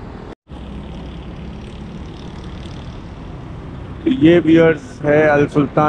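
Motorcycles ride past in city traffic.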